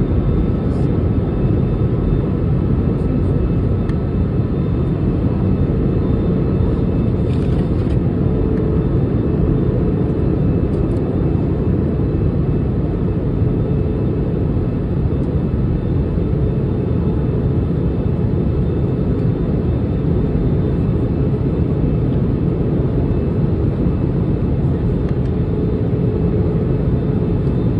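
A jet engine roars steadily, heard from inside an airliner cabin.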